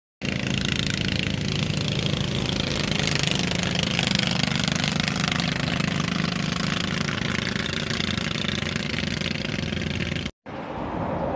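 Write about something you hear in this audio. A small boat engine putters steadily across open water.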